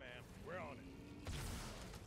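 An energy weapon fires with a sharp, hissing burst.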